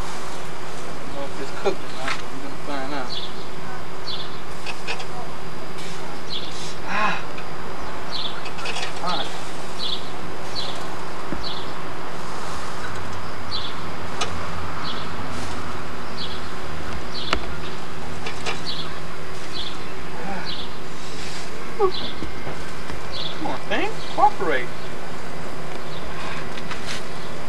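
Metal tongs click and scrape against a grill grate.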